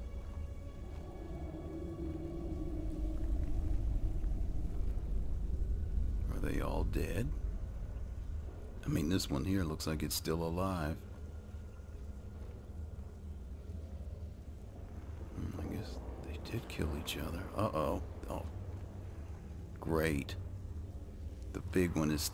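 Magic crackles and hums steadily close by.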